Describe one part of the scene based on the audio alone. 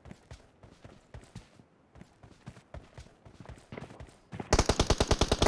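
Footsteps of a running figure thud on the ground.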